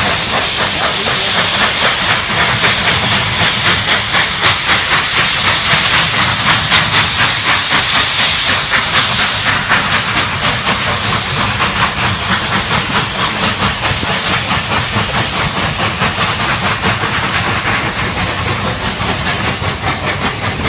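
Railway carriage wheels clatter on the track.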